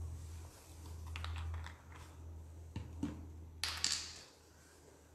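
A small brush taps and scrapes against a plastic paint palette.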